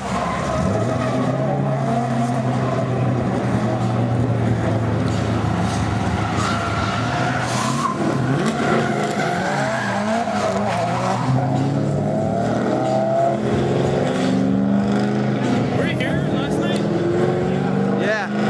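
Tyres screech on asphalt.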